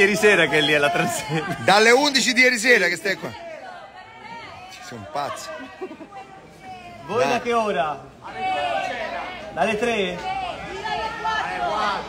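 A crowd of people cheers and shouts loudly nearby.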